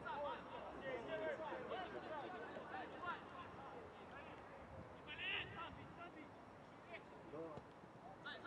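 Young men shout and call to each other across an open outdoor field.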